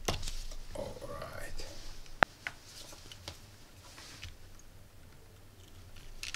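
Wires rustle and tap as they are handled.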